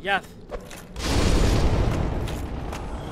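A sword slashes with a heavy crash.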